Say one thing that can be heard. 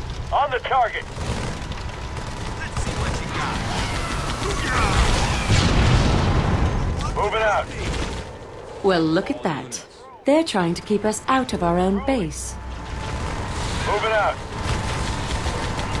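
Weapons fire in rapid bursts during a battle.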